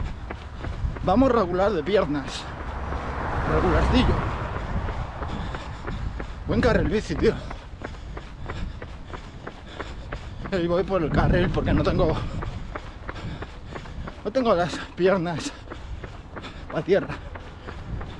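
A man speaks close to the microphone, slightly out of breath while running.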